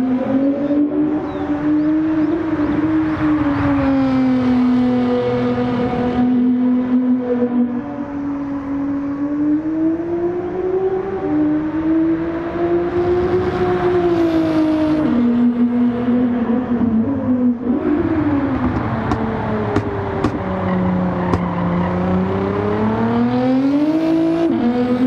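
A race car engine roars loudly, its pitch rising and falling as it speeds up and shifts gears.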